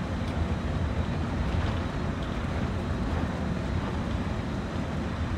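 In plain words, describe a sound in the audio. A train engine rumbles steadily as the locomotive rolls along the tracks.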